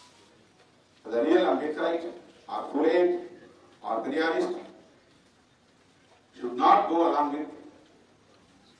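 A middle-aged man speaks firmly into a microphone in short bursts with pauses.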